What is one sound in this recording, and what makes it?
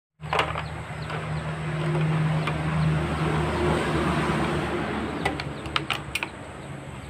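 Small metal parts click and clatter.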